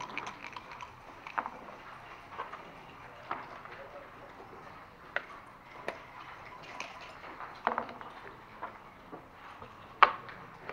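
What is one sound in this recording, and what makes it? Backgammon checkers click and clack against a wooden board.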